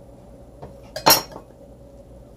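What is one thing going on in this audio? A knife is set down on a hard countertop with a sharp clack.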